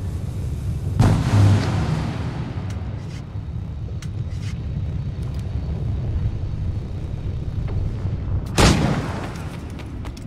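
A loud blast booms and echoes away.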